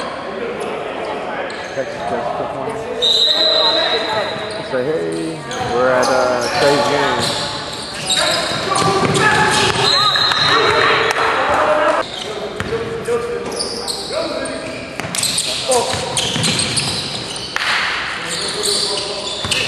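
Players shout to one another across the court.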